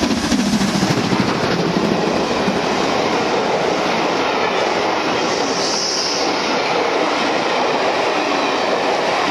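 Train carriages rumble and clatter over the rails.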